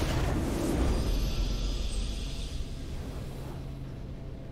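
A triumphant victory fanfare rings out and fades.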